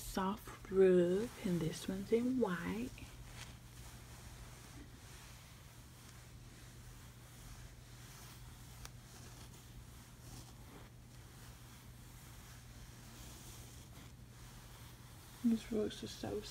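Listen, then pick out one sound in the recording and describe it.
A hand brushes softly over a furry rug.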